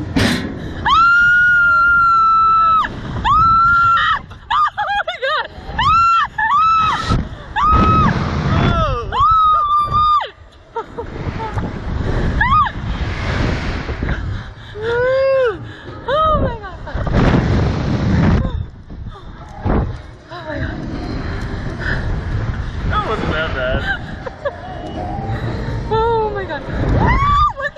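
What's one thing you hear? A young woman screams loudly and shrilly, close by.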